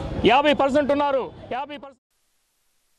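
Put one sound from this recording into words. A man speaks forcefully into microphones outdoors.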